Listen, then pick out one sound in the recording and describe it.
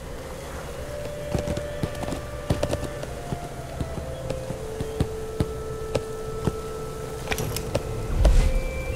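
Horse hooves clop steadily on snow.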